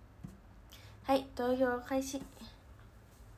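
A young woman speaks briefly and calmly, close to the microphone.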